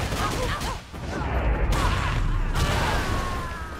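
A fiery blast bursts with a loud whoosh.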